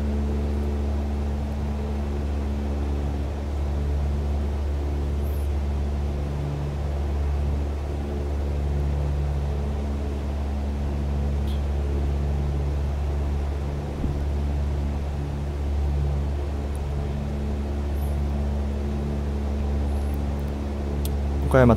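A small plane's engine drones steadily inside the cockpit.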